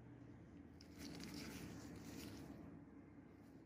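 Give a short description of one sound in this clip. Rubber gloves rub and rustle right up close.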